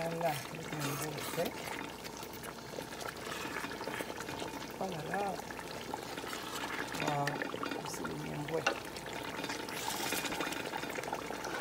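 A wooden spoon stirs and scrapes through a stew in a metal pot.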